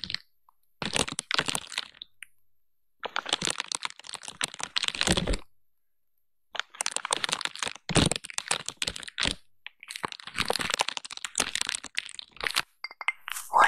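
A stiff brush scratches over crinkly plastic wrap.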